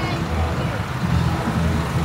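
A tractor engine rumbles low as it drives past.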